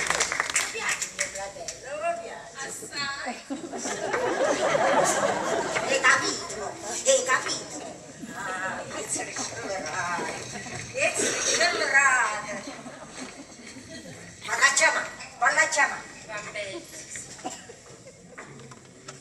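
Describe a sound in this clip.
Women speak with animation on a stage, heard from a distance.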